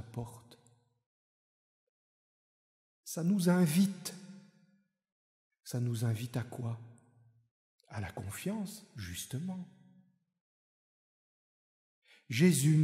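A middle-aged man speaks slowly and solemnly into a microphone, in pauses, in a reverberant hall.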